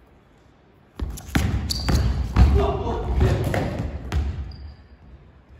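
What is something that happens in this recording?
Young men shout and cheer from the side of a large hall.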